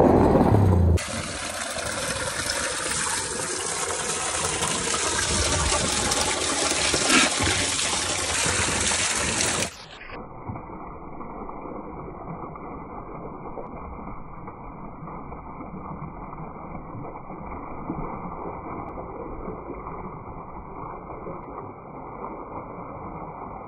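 Water gushes loudly from a pipe into a trough.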